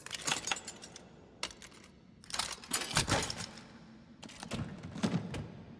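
A metal case opens with a clatter.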